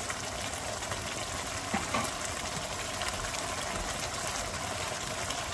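A thick stew bubbles and simmers in a pan.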